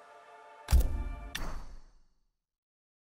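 A game menu selection sound hits with a sharp boom and a quick echo.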